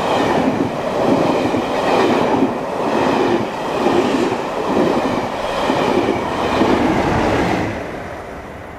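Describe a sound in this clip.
A train rushes past close by, its wheels clattering rhythmically over the rail joints.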